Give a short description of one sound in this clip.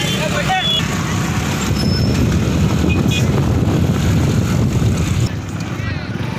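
Motorcycle engines rumble close by.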